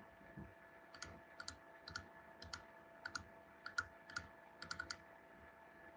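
A computer mouse clicks several times in quick succession.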